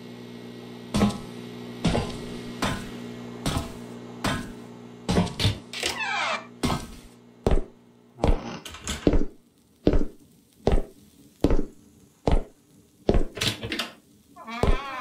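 Slow footsteps thud on a wooden floor.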